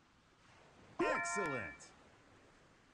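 A bright game chime rings out with a quick rising sweep.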